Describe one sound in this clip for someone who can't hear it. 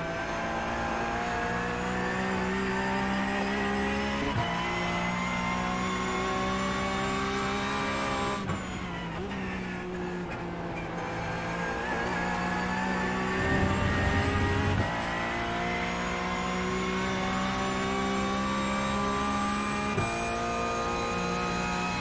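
A racing car engine roars steadily, dropping in pitch as the car brakes and rising again as it speeds up.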